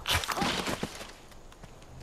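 A knife stabs with a sharp, wet thud.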